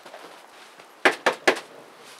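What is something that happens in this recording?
Knuckles knock three times on a door.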